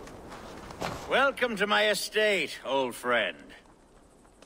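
A man speaks calmly and warmly.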